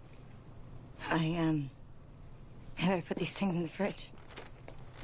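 A woman speaks quietly and calmly nearby.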